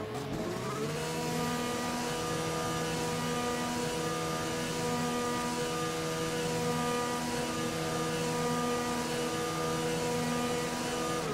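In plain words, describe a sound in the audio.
A racing car engine hums steadily at low revs.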